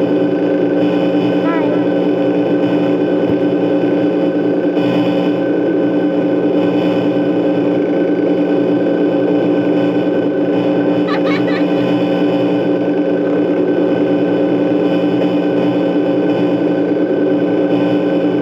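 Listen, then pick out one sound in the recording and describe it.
Electronic static hisses and hums steadily.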